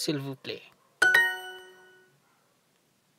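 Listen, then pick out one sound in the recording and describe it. A bright electronic chime rings once and rings on as it fades.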